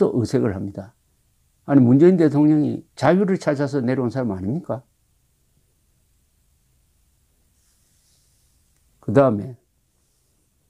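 An elderly man speaks calmly and warmly over an online call.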